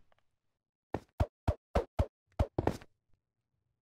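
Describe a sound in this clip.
Blocks are placed with short, sharp clicks.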